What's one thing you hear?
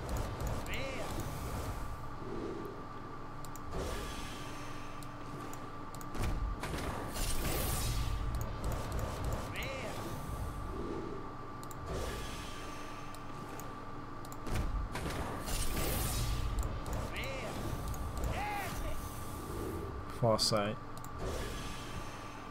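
Cards flip over with bright chiming sparkles.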